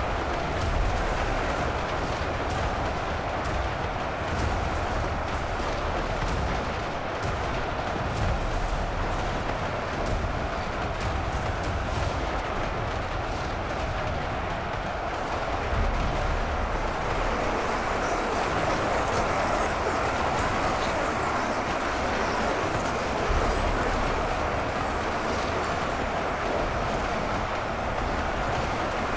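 Weapons clash and clang in a large battle.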